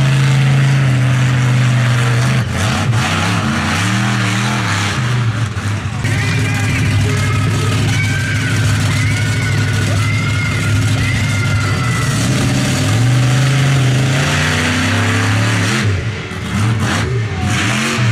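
A monster truck engine roars and revs loudly outdoors.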